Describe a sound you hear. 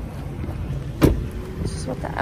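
A car door shuts with a solid thud.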